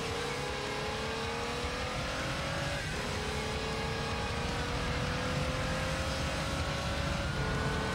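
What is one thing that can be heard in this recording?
A racing car engine revs higher and higher, dropping briefly as it shifts gear.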